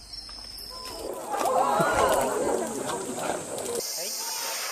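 A hippo chews food with wet crunching.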